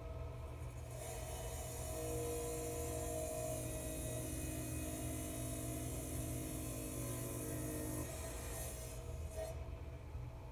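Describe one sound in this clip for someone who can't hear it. A wet tile saw blade grinds through glass.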